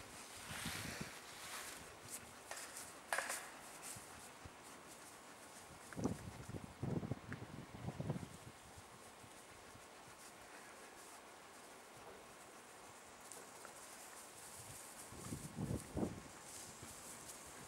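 A puppy scuffles and pounces on grass.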